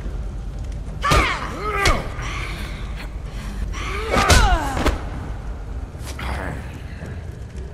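A man grunts and groans in pain.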